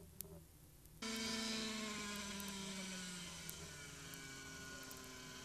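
A model helicopter engine whines loudly and slowly drops in pitch.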